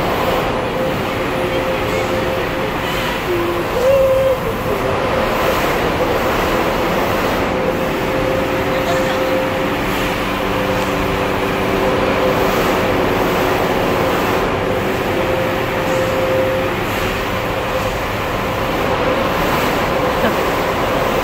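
An electric ride machine hums steadily as it turns.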